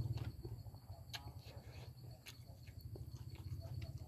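A man slurps noodles close by.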